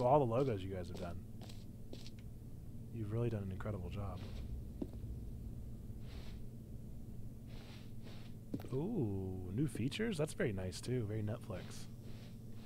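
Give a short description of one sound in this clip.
A man talks casually into a close microphone, with pauses.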